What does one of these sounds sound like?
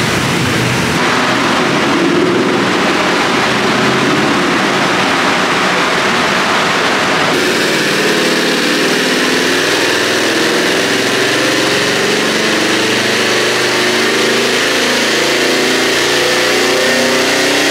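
A car engine roars loudly at high revs indoors.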